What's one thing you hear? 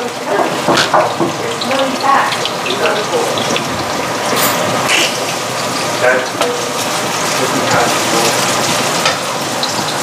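A wooden spatula scrapes and stirs in a pan.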